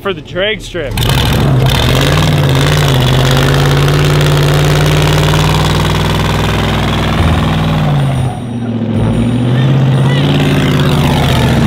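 A car engine roars loudly and steadily.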